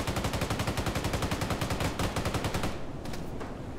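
Rapid gunfire rattles in a fast burst.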